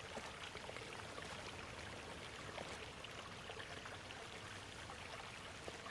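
Water trickles and splashes.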